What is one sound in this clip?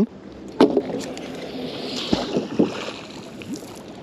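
An object splashes into water nearby.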